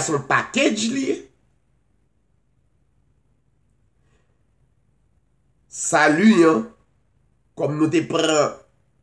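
A middle-aged man speaks calmly and close to a microphone, pausing between phrases.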